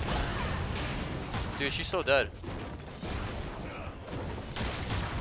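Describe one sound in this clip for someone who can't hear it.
Video game spell effects and explosions crackle and boom.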